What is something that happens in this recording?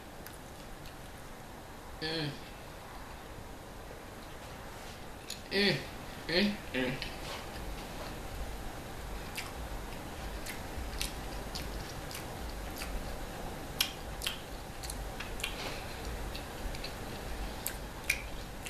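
A woman bites into a pizza and chews it close to a microphone.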